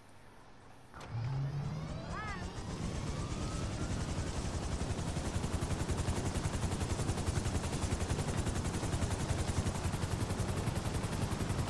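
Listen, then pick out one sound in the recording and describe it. A helicopter's engine starts up and its rotor beats in a fast, steady thud.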